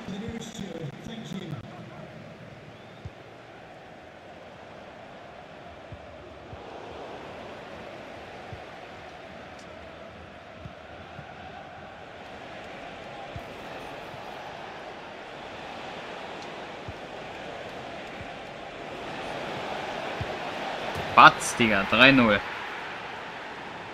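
A stadium crowd murmurs and cheers steadily, swelling as an attack nears the goal.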